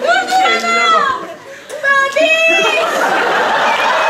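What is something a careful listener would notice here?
A woman shouts excitedly on stage.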